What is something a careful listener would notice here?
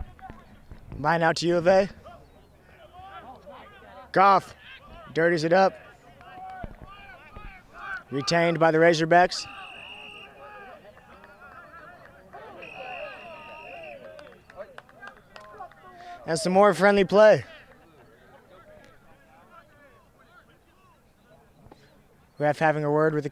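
Young men shout close by, outdoors.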